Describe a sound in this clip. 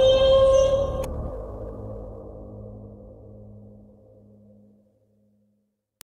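Music plays from a record and slowly fades away.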